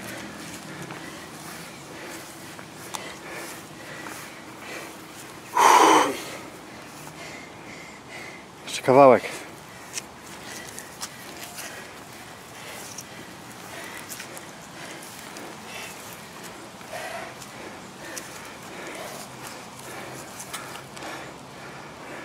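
Footsteps shuffle on paving stones.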